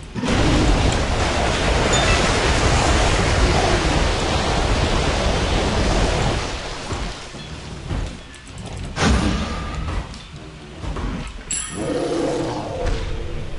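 Loud fighting sound effects from a game crash and whoosh.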